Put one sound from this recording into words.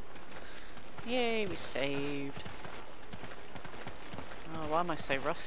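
A young woman talks close to a microphone.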